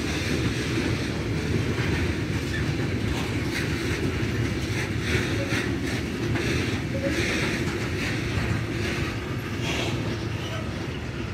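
A freight train rumbles steadily past on the rails.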